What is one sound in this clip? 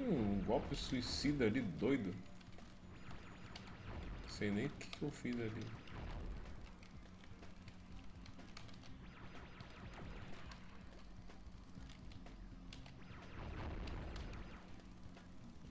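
A game's dragon breathes a roaring burst of fire.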